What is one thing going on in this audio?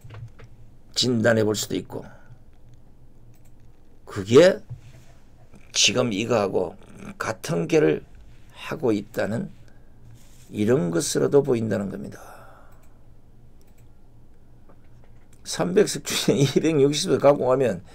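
A middle-aged man speaks forcefully into a close microphone, in short bursts with pauses.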